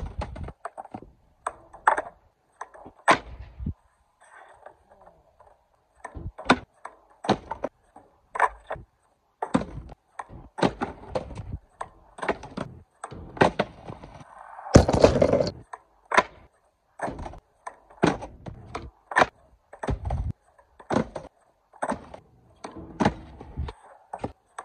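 A skateboard's wooden deck snaps and clatters on concrete.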